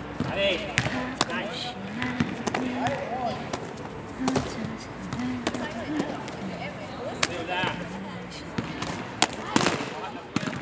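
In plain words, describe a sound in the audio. A kick smacks sharply against a padded target.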